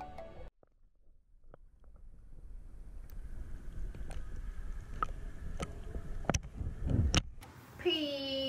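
Water laps and splashes close by.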